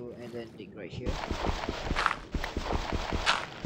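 A shovel digs repeatedly into dirt with quick crunching knocks.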